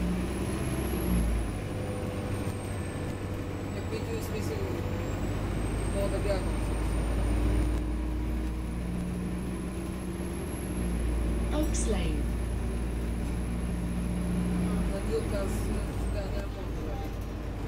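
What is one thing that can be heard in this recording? Windows and fittings rattle as the bus rolls along.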